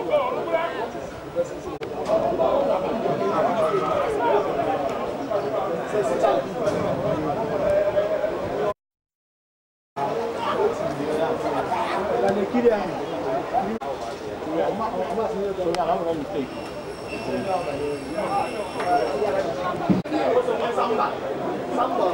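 A crowd of men chatter and shout nearby, outdoors.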